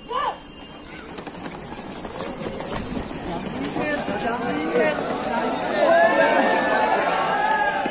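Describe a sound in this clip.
Many feet pound on dirt as runners race off.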